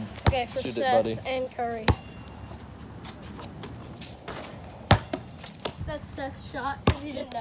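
A basketball bounces with sharp thuds.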